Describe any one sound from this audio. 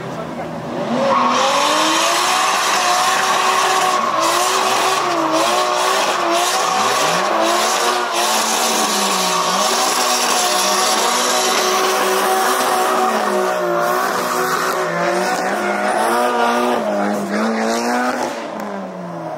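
Tyres squeal loudly on asphalt.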